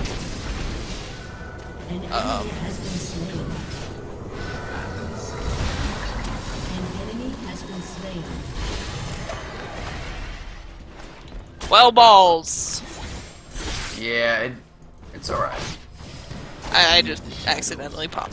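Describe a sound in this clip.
Magic spells and weapon strikes clash and burst in a fantasy video game battle.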